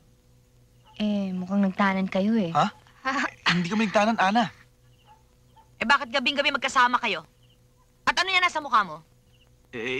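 A woman speaks close by, tense and emotional.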